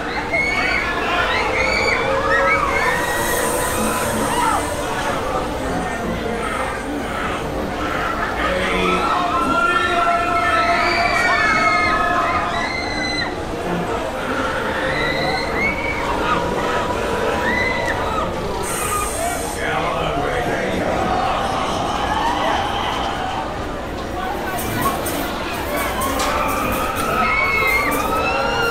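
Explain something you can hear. A fairground ride whirs and rumbles as it swings round.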